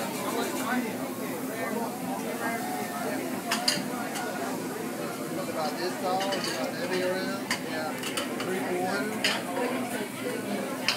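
Many voices chatter throughout in a busy room.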